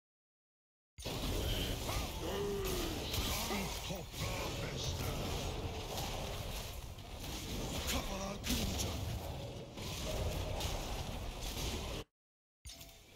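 Game spells and weapons clash and burst in a fight.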